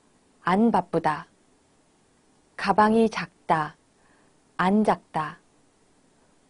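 A young woman speaks clearly and slowly into a close microphone, in short phrases with pauses.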